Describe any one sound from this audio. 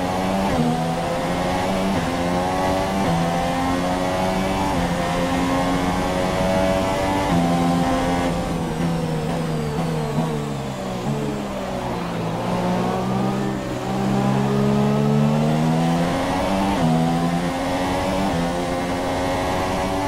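A racing car engine screams at high revs, shifting up through the gears and dropping in pitch under braking.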